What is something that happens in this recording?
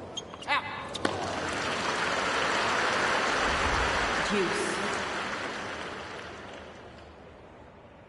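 A crowd cheers and applauds in a large arena, then fades.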